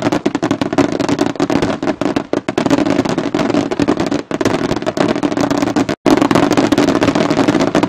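Fireworks crackle and pop rapidly overhead, outdoors.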